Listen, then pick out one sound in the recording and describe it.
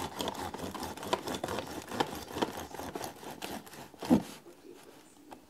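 A knife saws through a loaf of bread with quick scraping strokes.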